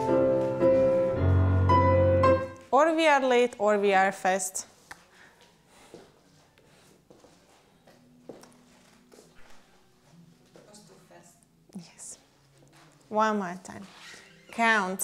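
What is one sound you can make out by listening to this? Dancers' feet shuffle softly on the floor.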